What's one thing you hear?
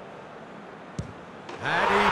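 A ball is struck hard with a single thud.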